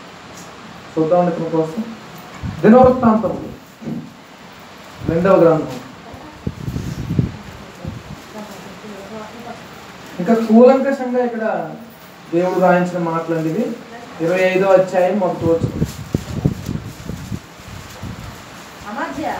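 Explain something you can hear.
A young man speaks through a microphone, in halting bursts with pauses.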